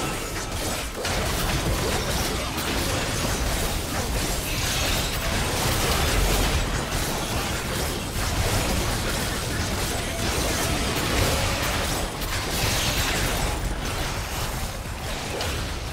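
Video game battle effects crash, zap and boom without pause.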